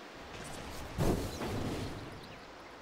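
A fiery magical blast whooshes and bursts.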